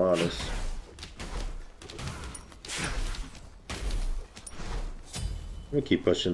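Weapons clash and magic effects whoosh in a game fight.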